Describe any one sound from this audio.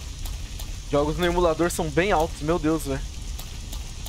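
A fire crackles and burns.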